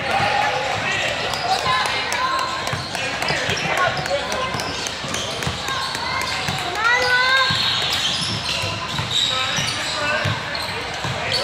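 Many young players and spectators call out and chatter nearby.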